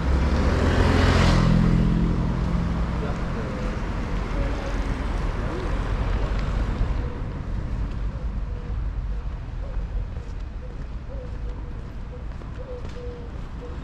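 Outdoor street noise rumbles steadily.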